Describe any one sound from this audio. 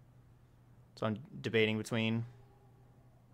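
A man speaks briefly and with animation, close to a microphone.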